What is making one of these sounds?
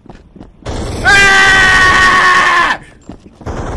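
A young man shouts loudly into a close microphone.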